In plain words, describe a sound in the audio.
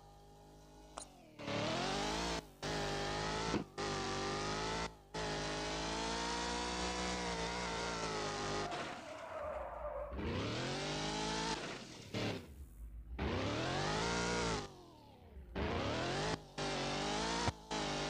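A car engine revs high, rising and falling with gear changes.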